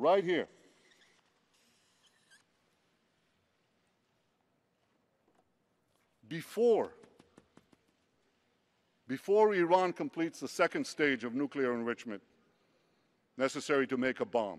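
A man speaks slowly and firmly through a microphone, with long pauses.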